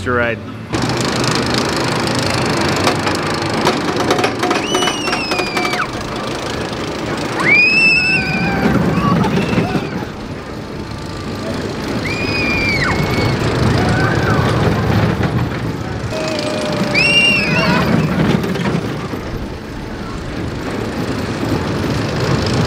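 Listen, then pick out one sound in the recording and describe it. A small roller coaster rumbles and clatters along its track.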